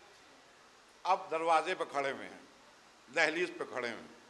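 An elderly man speaks with feeling into a microphone, in a slow, reciting manner.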